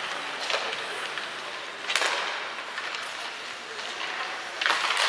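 Skates scrape and hiss across the ice in a large echoing arena.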